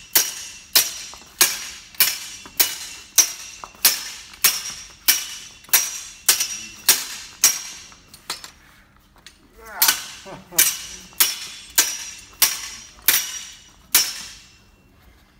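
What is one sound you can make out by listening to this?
Steel swords clash in quick, ringing blows, echoing in a large hall.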